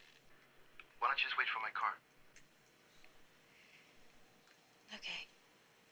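A young woman speaks softly and sleepily into a phone, close by.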